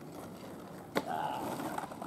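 A skateboard deck clacks sharply on the pavement.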